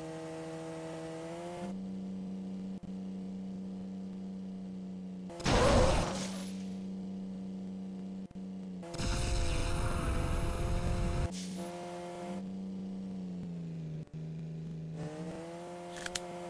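A sports car engine hums steadily, rising and falling in pitch as it speeds up.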